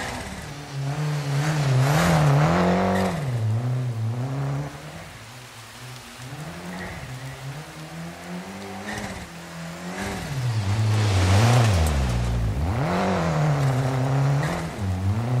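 Tyres crunch and spray over loose gravel.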